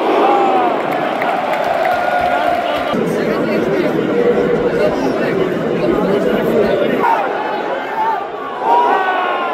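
A large crowd of football supporters cheers and chants in an open stadium.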